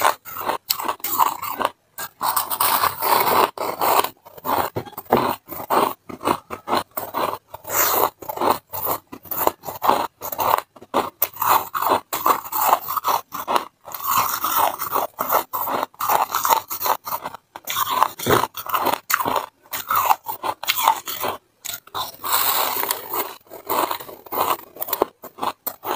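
A young woman crunches and chews ice loudly, close to a microphone.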